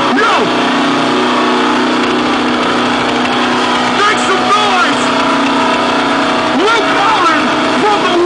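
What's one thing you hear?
A man shouts and sings loudly through a microphone over loudspeakers.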